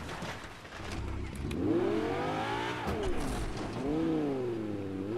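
A car engine revs from a game.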